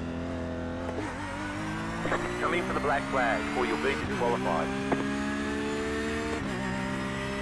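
A race car's gears shift with short drops in the engine's pitch.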